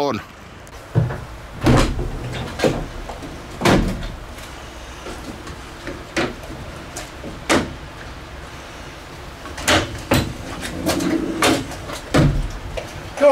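Metal clicks and clunks as a van door latch is handled.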